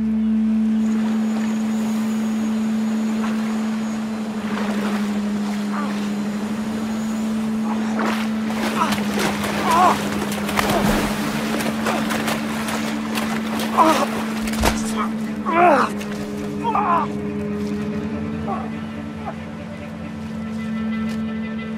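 Waves crash and wash onto the shore.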